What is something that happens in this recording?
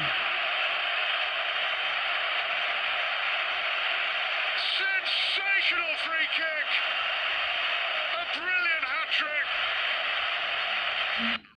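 A large stadium crowd roars loudly and steadily.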